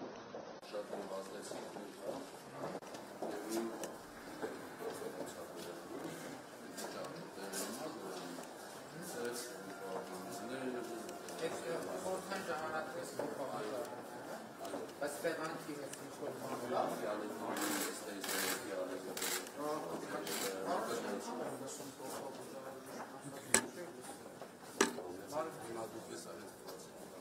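Footsteps of a group walk on a hard floor.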